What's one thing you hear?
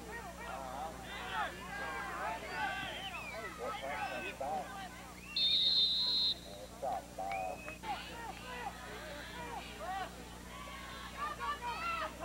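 A crowd of people talks and shouts nearby, outdoors.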